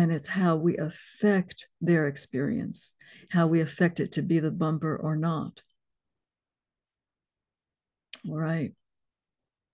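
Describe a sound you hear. A woman talks calmly and expressively close to a microphone.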